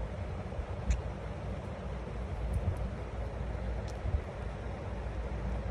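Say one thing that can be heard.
A small bird nibbles and clicks its beak against a finger.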